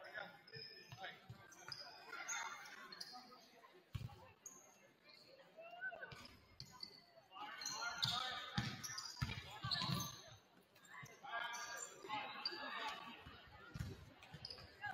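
Sneakers squeak on a hardwood floor in an echoing gym.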